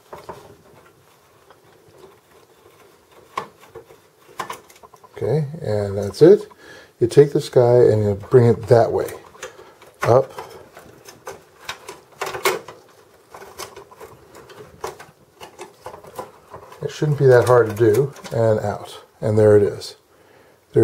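Small plastic and metal parts click and rattle as they are handled.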